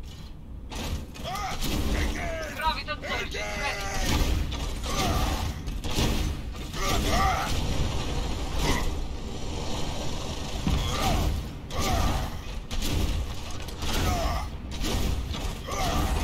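Heavy footsteps thud on a metal floor.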